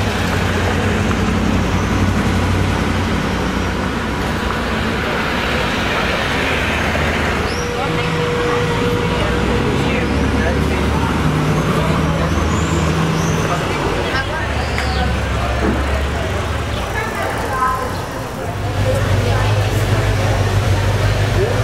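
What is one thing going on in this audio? Old car engines idle and rumble nearby.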